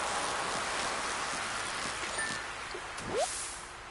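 A fishing reel whirs as a fish is reeled in.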